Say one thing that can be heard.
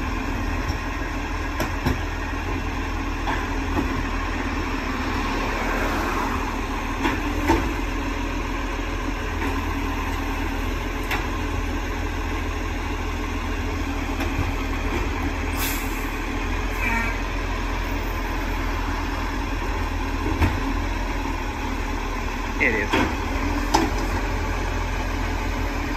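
A garbage truck engine idles with a steady low rumble.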